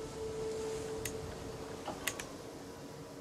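Soft interface clicks sound as menus open and close.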